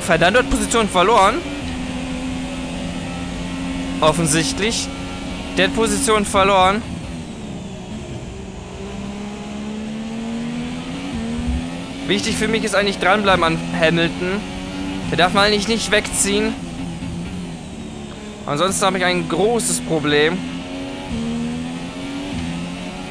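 A racing car engine whines loudly, revving up and dropping with each gear change.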